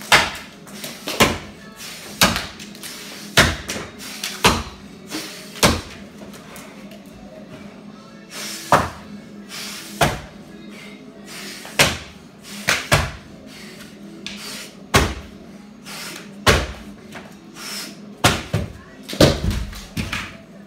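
A hammer knocks sharply against wood overhead, in uneven blows.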